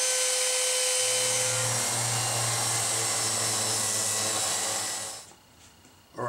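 An orbital sander hums against wood.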